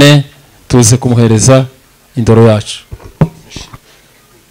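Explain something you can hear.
A man speaks into a microphone through a loudspeaker in an echoing hall.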